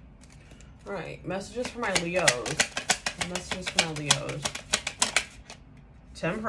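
Playing cards riffle and flutter as they are shuffled by hand.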